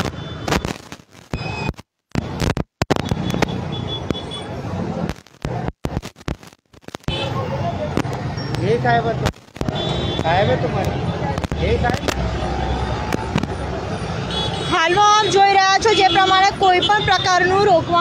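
Motorbikes and auto-rickshaws drive past on a busy road.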